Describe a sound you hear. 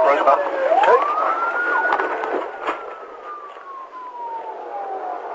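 A police siren wails, rising and then slowly falling.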